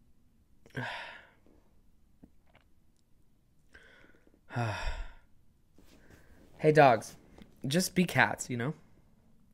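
A young man speaks close to a microphone in short, hesitant bursts.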